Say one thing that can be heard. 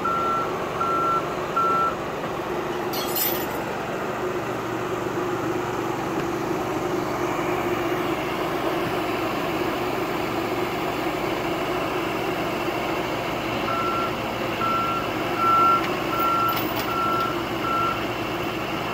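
An excavator's warning alarm beeps at an even pace.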